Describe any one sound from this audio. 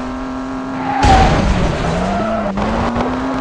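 A car thumps hard against something at the roadside.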